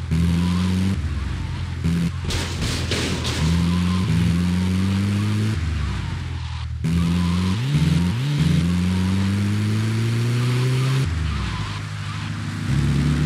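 A vehicle engine hums and revs up repeatedly as it drives.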